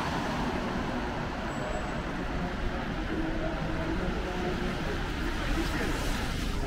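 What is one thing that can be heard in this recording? Tyres hiss on a wet road.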